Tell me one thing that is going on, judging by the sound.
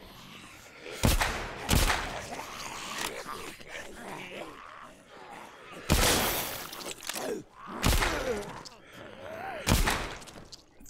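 A pistol fires loud shots in a small room.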